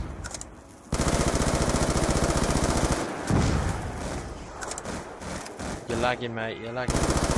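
A machine gun fires in rapid bursts close by.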